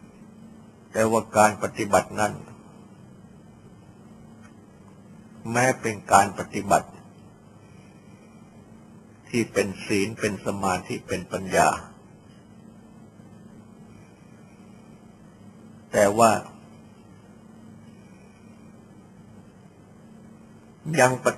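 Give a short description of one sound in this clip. An elderly man speaks calmly in short phrases with long pauses, heard through a recording.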